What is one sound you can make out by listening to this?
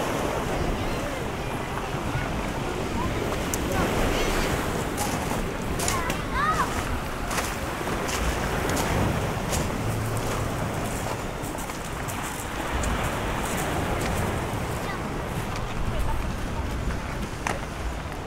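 Pebbles crunch underfoot with each step.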